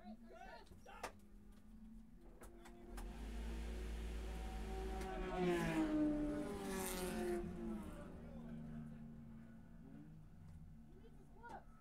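A race car engine idles with a low, steady rumble.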